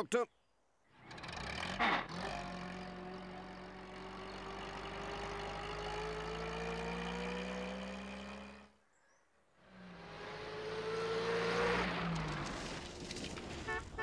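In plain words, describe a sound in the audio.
A small van engine hums and revs as it drives past.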